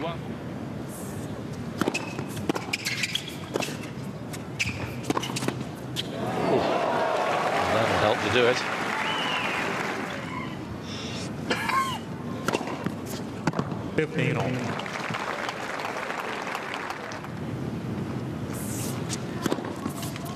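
A tennis ball is struck hard with a racket.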